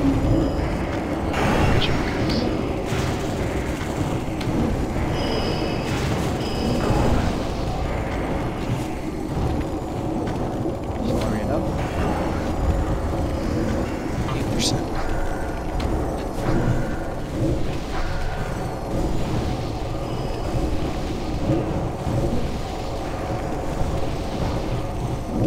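Spell effects crackle and whoosh during a fantasy battle.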